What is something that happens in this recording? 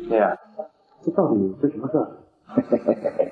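A young man speaks calmly nearby.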